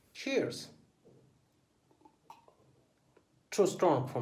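A young man sips a drink from a glass.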